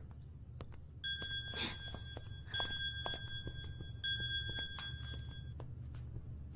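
A phone rings in short repeated electronic bursts.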